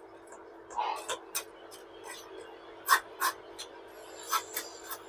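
A metal ladle taps and scrapes against a metal strainer.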